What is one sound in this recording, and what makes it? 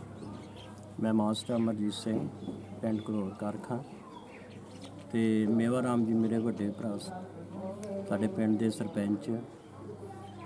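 An elderly man speaks with feeling into a microphone up close.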